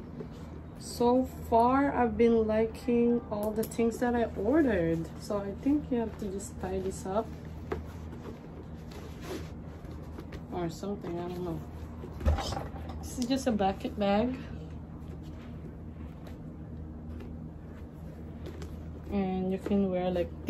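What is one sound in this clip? A young woman talks close by, calmly and with animation.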